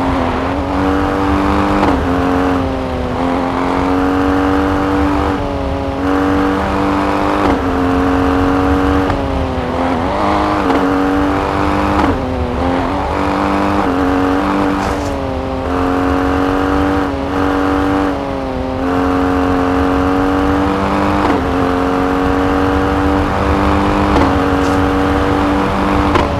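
A rally SUV engine revs high and drops with each gear change.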